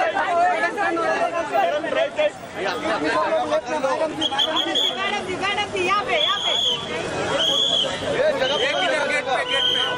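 A crowd of men call out and shout loudly nearby.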